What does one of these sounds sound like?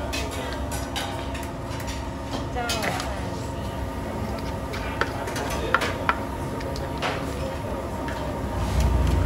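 A ladle scrapes and clinks against a clay mortar.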